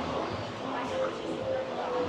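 Footsteps tap on a hard floor nearby.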